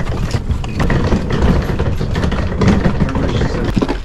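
Suitcase wheels rattle over bricks.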